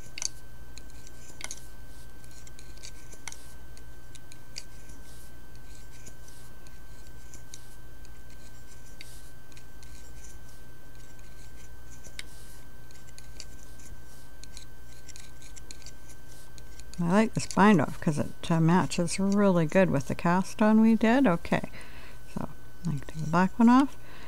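A metal hook clicks and scrapes softly against wooden pegs.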